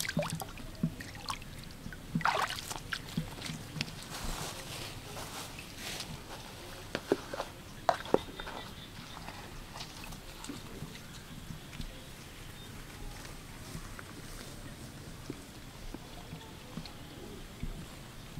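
Water trickles from a pipe into shallow water.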